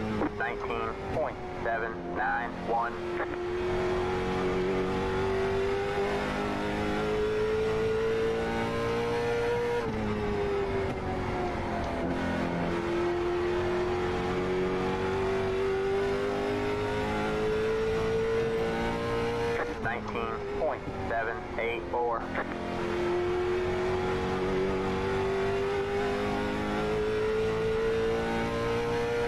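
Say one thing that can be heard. A race car engine drones steadily, its pitch rising along the straights and dipping into the turns.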